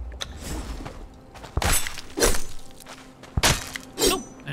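A knife slices wetly into an animal carcass.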